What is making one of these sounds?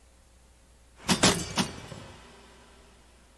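A metal sword clangs onto a stone floor and rings.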